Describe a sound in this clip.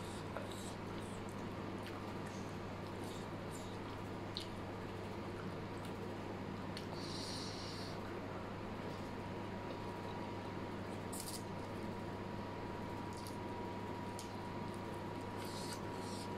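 Chopsticks clink against a plate.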